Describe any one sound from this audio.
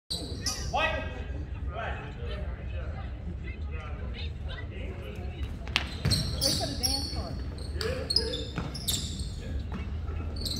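Young players and onlookers call out and chatter in the background.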